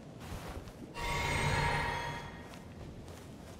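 A magic spell hums and shimmers.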